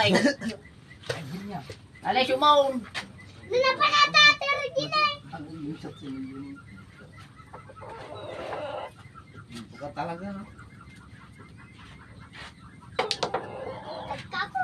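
Young men talk and laugh loudly close by.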